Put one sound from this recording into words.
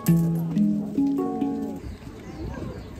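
A steel hand drum rings out soft, melodic notes.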